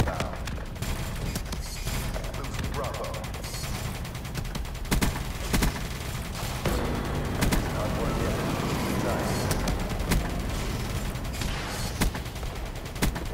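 Heavy gunfire booms in sharp blasts.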